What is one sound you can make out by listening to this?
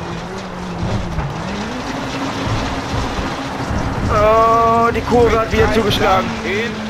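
Tyres crunch over gravel.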